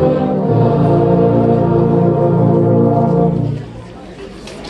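A brass band holds a loud final chord and stops.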